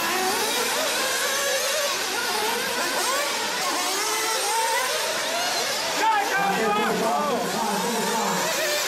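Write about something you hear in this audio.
Small electric model cars whine loudly as they race, their pitch rising and falling.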